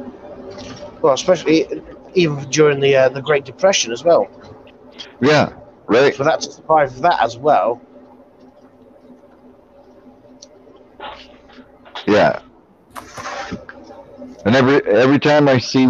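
A middle-aged man talks calmly over an online call.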